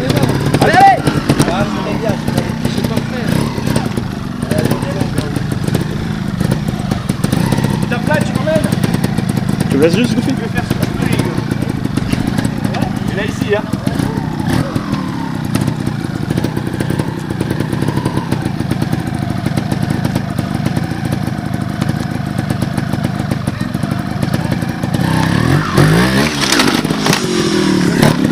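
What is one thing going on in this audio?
A motorbike engine idles and revs in bursts close by.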